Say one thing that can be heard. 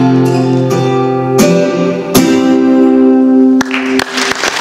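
A guitar is strummed in a few ringing chords.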